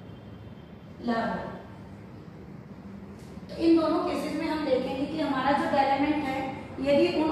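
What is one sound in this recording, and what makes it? A young woman speaks calmly, as if explaining.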